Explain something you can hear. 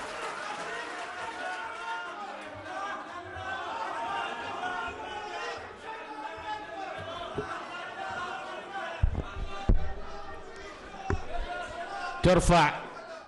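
A crowd murmurs and talks in a large hall.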